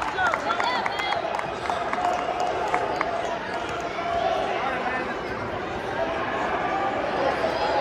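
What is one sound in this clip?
A crowd of people chatter throughout a large echoing hall.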